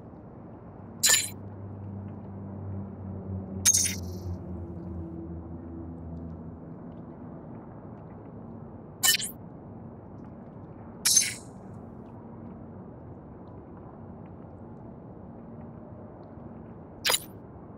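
A short electronic message alert chimes several times.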